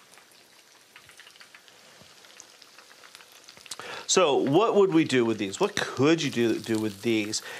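Food sizzles gently in a frying pan.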